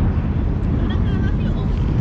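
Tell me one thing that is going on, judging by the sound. Men talk nearby as they walk up.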